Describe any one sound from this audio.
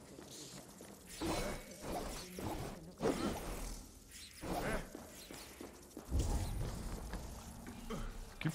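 A blade swishes through the air in quick swings.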